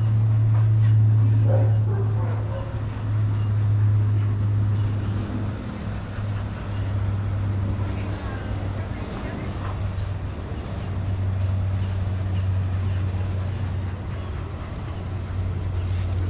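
Dogs' paws scuff and patter on sandy ground.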